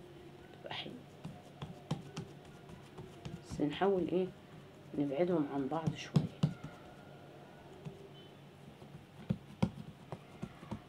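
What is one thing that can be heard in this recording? A hand pats soft dough with light, dull taps.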